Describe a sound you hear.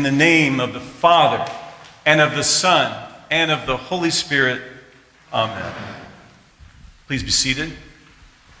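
A middle-aged man speaks with animation, reading aloud in an echoing room.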